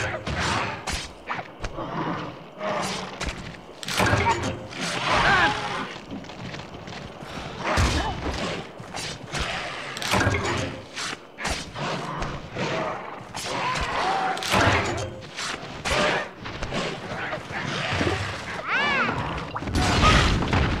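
A blade slashes and thuds into a creature again and again.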